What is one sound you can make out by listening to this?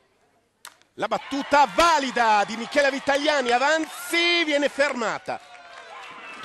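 A crowd cheers loudly nearby.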